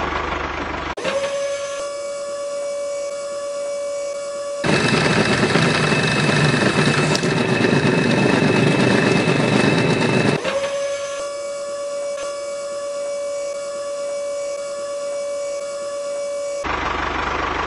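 A small electric motor whirs steadily.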